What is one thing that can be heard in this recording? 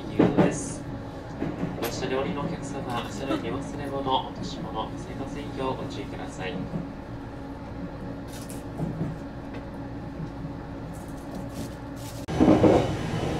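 A train rolls slowly along the rails into a station.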